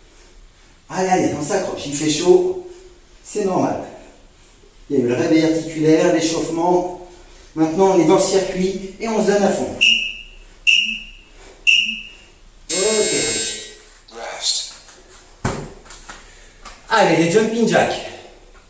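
A man talks calmly and steadily, close by.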